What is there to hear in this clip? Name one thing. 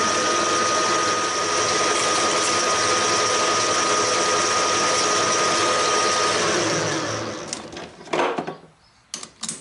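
A metal lathe runs with a whirring hum and winds down to a stop.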